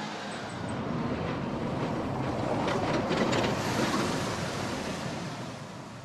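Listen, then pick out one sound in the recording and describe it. A bus engine rumbles close by.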